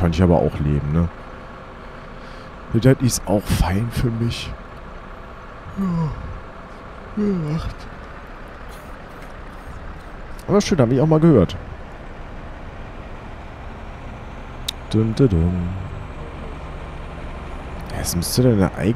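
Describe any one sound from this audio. A bus engine hums steadily while driving.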